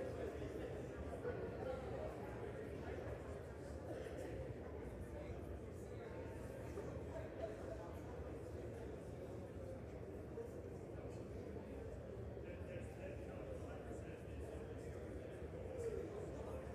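Many people murmur and chat at once in a large echoing hall.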